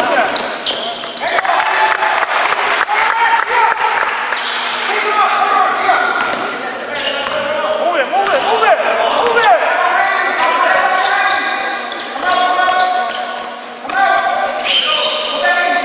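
Young men shout to each other across a large echoing gym.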